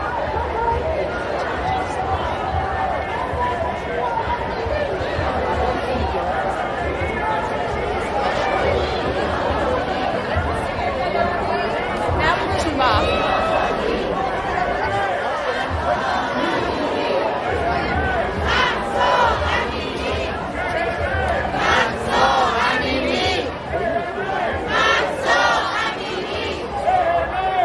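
A large crowd of men and women chants loudly outdoors.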